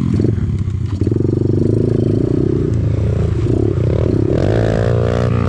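A dirt bike engine revs up close by.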